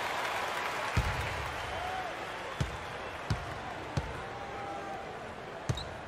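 A basketball bounces on a wooden floor with dull thumps.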